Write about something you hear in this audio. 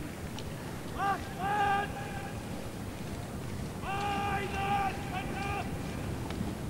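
A man shouts long, drawn-out commands loudly.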